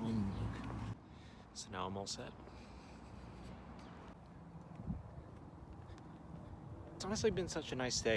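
A young man talks close to the microphone.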